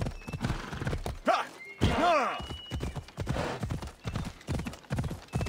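Hooves thud rhythmically as a horse gallops over soft ground.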